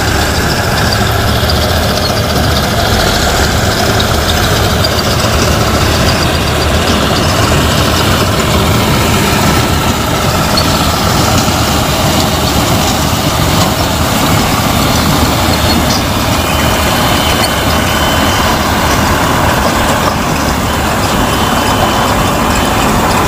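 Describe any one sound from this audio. A combine harvester's engine roars steadily close by.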